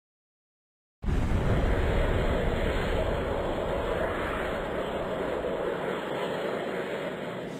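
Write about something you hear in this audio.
A game's rocket engine roars with a rushing blast.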